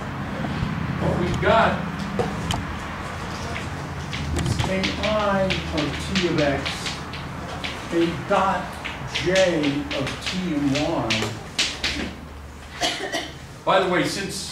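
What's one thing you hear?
An elderly man lectures calmly in an echoing room.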